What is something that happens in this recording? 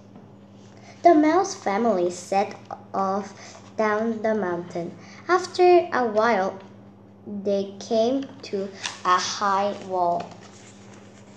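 A young girl reads aloud close by.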